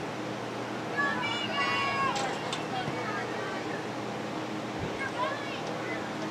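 Young women shout to each other across an open outdoor field.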